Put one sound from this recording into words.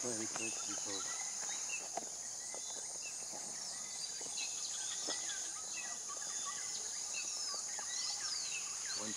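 A river flows gently nearby.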